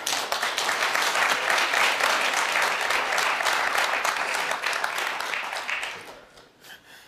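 A studio audience claps and applauds loudly.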